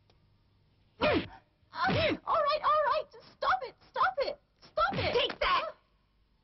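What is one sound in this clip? A young woman groans and speaks in pain.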